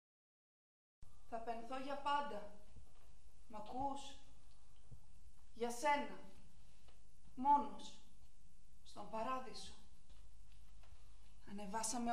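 A woman recites slowly, in short phrases with long pauses.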